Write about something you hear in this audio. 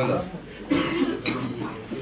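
Glasses clink together in a toast.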